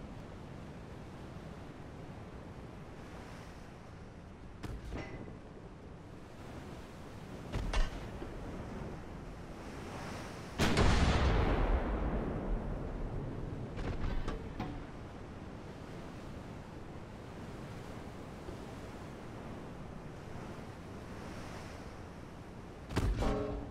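Sea waves wash and rumble steadily.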